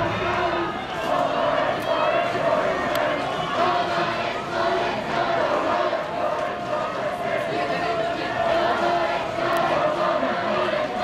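A crowd of people cheers and shouts outdoors.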